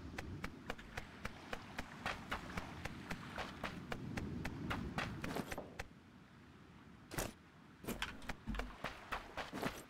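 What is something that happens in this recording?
Quick footsteps run on hard ground.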